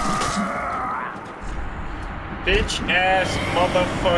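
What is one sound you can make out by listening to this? A sword slashes and strikes a foe.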